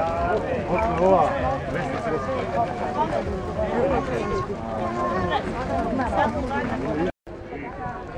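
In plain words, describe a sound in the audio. A crowd of men and women chatters and talks all around, close by, outdoors.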